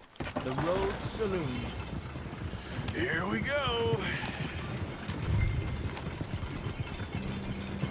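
Wooden wagon wheels rumble and creak.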